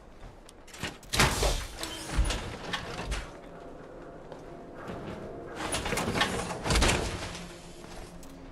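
Heavy metal armour clanks and hisses as it opens and closes.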